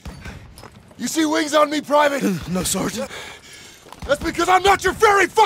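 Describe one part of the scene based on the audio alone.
A man speaks gruffly and urgently, close by.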